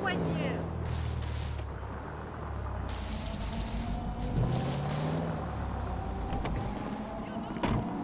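A car engine hums as a car drives slowly.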